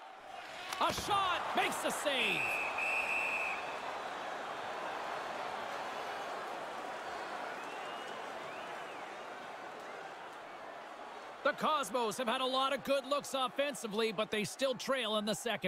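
A large crowd roars and murmurs in a big arena.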